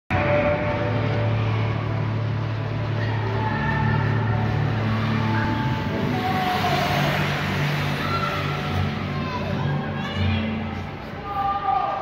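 Pop music plays through loudspeakers in a large echoing hall.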